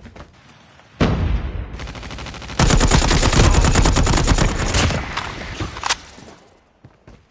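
A rifle fires in rapid bursts, close and loud.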